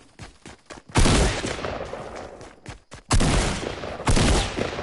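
A gun fires loud, booming shots.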